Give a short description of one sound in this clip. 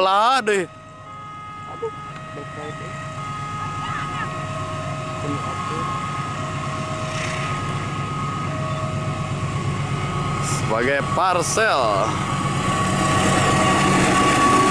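A train rumbles as it approaches, growing louder.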